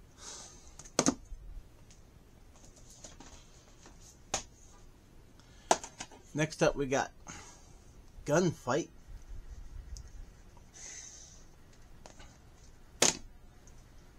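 A plastic case clicks and taps as it is handled.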